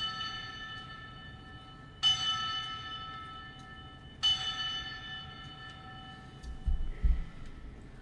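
Small altar bells ring brightly and echo, several times.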